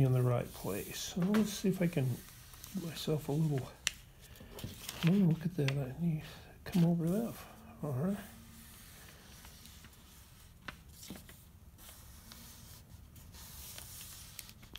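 Paper rustles softly as hands press and smooth it flat.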